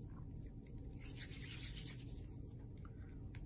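Plastic wrap crinkles softly under a hand.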